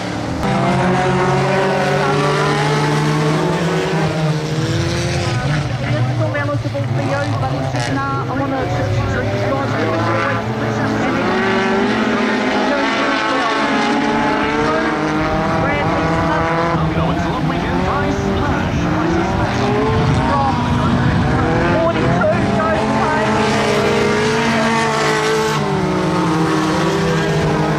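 Several car engines roar and rev loudly.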